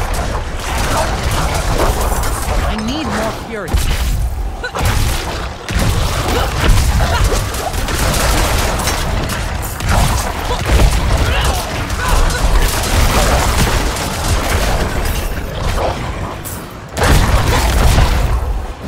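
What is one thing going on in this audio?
Heavy blows and slashing strikes land rapidly in a fierce fight.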